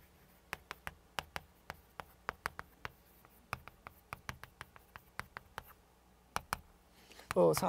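Chalk taps and scratches on a board in quick strokes.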